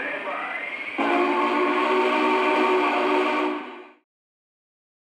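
A model steam locomotive's whistle blows a long, steady chord and then fades away.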